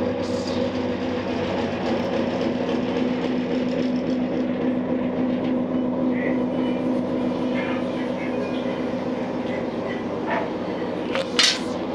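A steady low mechanical hum drones throughout.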